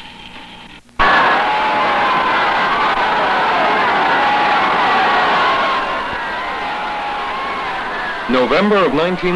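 A crowd of young girls and boys screams shrilly and excitedly.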